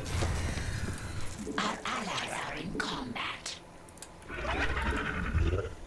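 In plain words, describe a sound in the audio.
Game clicks and unit responses sound in quick bursts.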